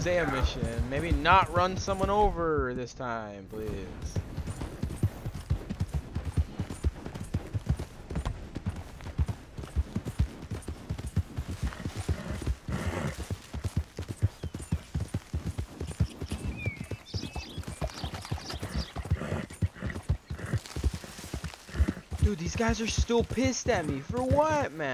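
A horse gallops, hooves pounding steadily on soft ground.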